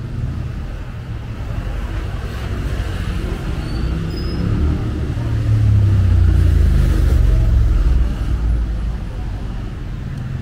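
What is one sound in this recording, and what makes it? Traffic rumbles steadily along a nearby street, growing louder for a few seconds in the middle.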